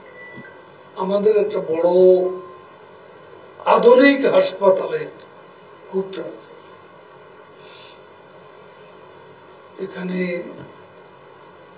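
An elderly man speaks into a microphone in short, emphatic bursts with pauses between them.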